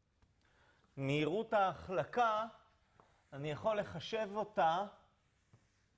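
A man speaks calmly and clearly, as if lecturing.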